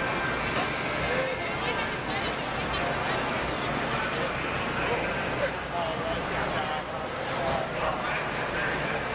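A crowd of men and women chatter nearby, with many voices overlapping.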